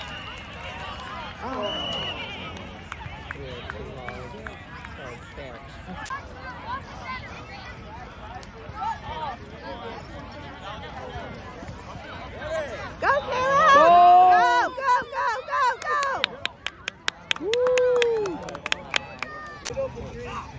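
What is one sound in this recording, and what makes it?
A crowd of children and adults chatters and calls out across an open field.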